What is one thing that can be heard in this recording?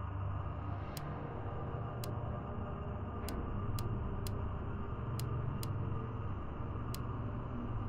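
Short electronic menu clicks sound one after another.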